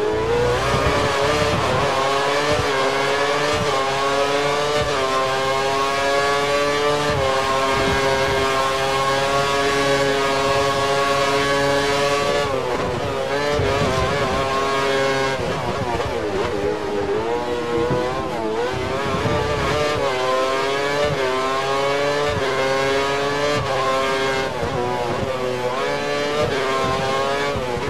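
A racing car engine screams at high revs, rising in pitch and dropping sharply with each gear change.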